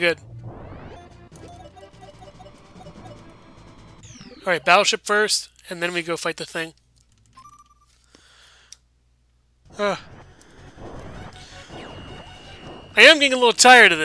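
Electronic game music plays.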